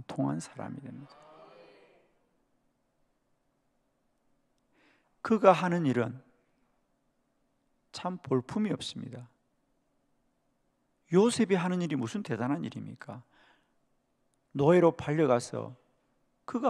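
A middle-aged man speaks calmly into a microphone over a loudspeaker, with pauses between phrases.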